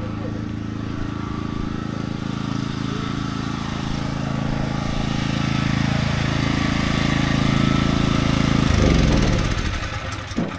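A small generator engine runs steadily, then winds down and stops.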